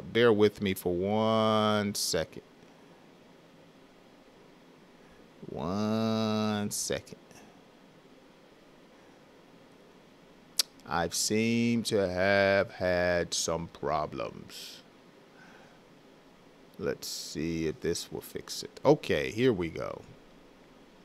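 A man speaks close into a microphone with animation, pausing between phrases.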